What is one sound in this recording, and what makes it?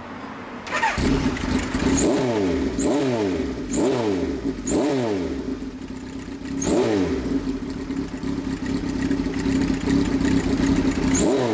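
A motorcycle engine revs up and down repeatedly, loud and close.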